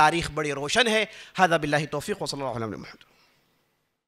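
A man chants loudly into a microphone in a melodic voice.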